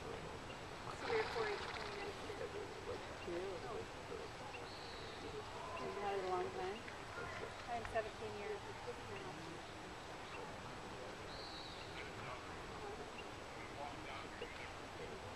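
Several adults talk casually at a distance outdoors.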